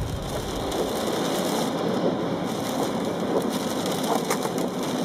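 Tyres roar on a motorway at speed, heard from inside a car.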